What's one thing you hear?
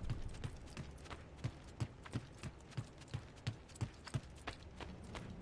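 Footsteps run quickly and evenly on a hard floor.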